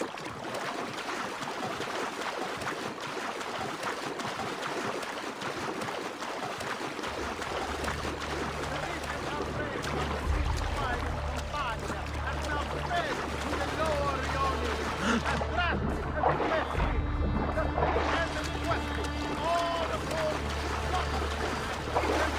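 Water splashes steadily as a swimmer strokes quickly through it.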